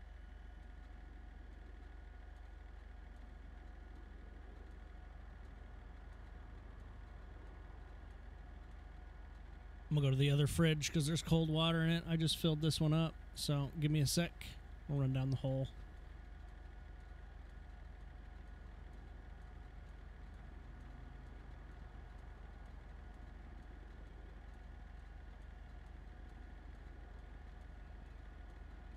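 A pickup truck's engine idles.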